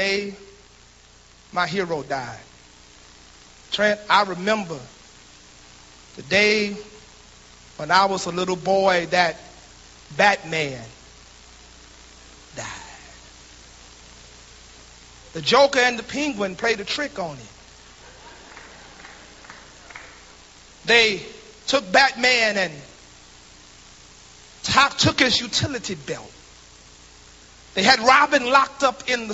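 A man preaches with slow, emphatic phrases and long pauses, heard through loudspeakers in a large echoing hall.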